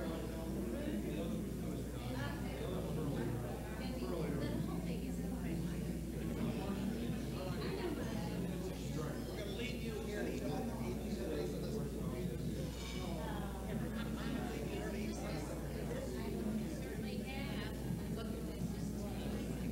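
A crowd of men and women chatter and murmur nearby.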